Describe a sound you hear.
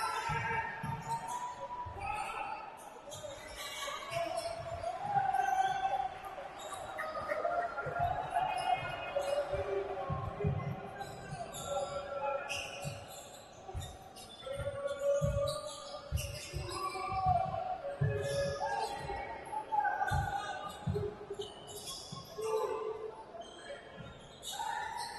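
A basketball bounces on a wooden court with hollow thuds.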